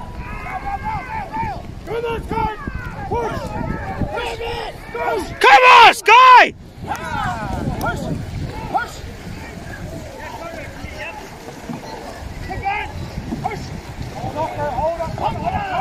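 Paddles splash through the water in a steady rhythm.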